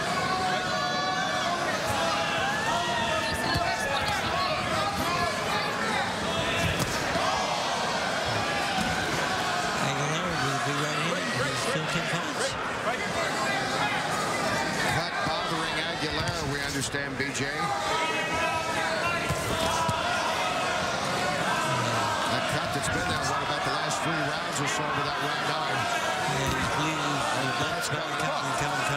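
A large crowd murmurs and cheers throughout in a big echoing hall.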